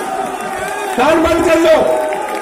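A man speaks forcefully over a loudspeaker.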